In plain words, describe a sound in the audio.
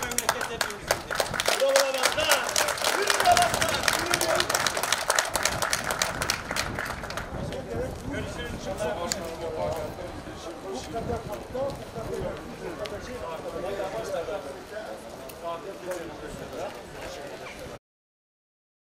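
Men talk and call out in a crowd nearby.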